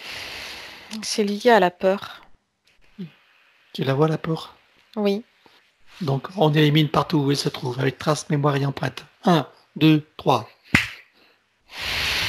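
A man speaks calmly and with animation, heard through a headset microphone over an online call.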